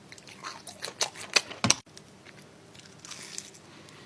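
A man crunches into crispy fried food.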